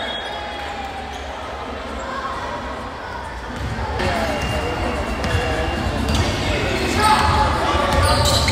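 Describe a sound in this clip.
Spectators murmur and call out in a large echoing gym.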